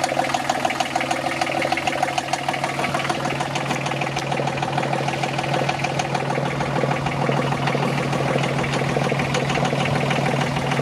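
A boat engine runs with a steady, rapid rattling hum.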